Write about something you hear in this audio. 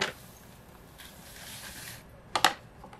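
Dry powder pours softly into a glass jar.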